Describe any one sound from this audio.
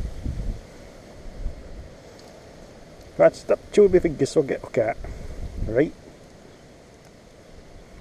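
A fishing net rustles against grass as hands handle a fish.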